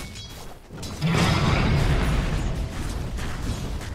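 A fiery blast bursts with a loud roar.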